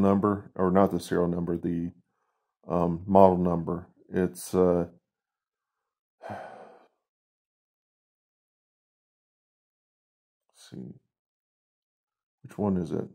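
A man speaks with animation close by, in short bursts with pauses.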